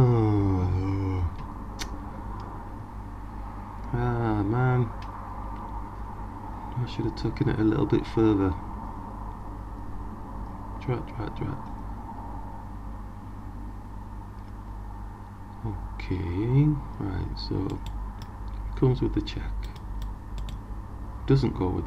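An older man talks calmly and thoughtfully into a microphone, with pauses.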